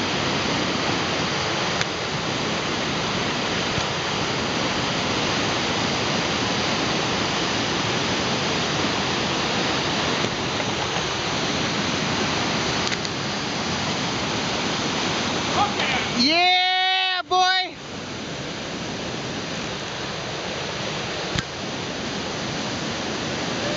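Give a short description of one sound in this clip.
Whitewater rapids roar loudly and steadily.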